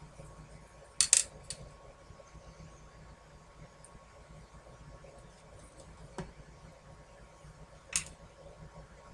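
Small pieces tap and click on a hard tabletop.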